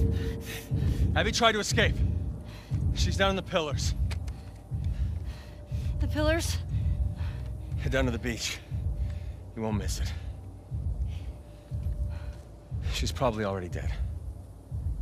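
A man speaks calmly and taunts.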